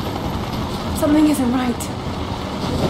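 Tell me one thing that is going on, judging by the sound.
A young woman speaks briefly and calmly.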